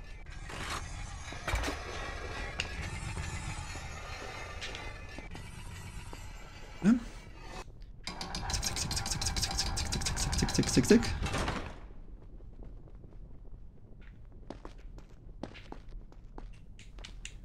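Quick footsteps run across a stone floor.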